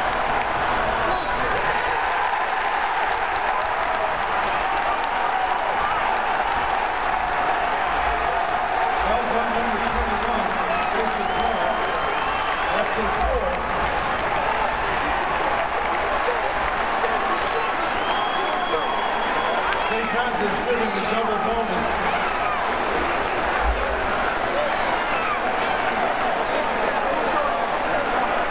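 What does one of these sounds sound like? A large crowd cheers and roars in a large echoing arena.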